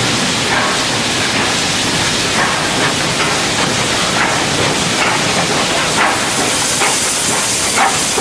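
Metal wheels clank and squeal on rails.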